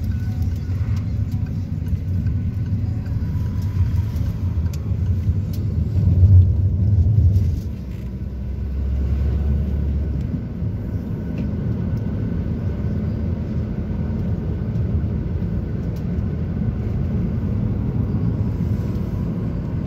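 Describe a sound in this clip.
A car engine hums steadily from inside a moving vehicle.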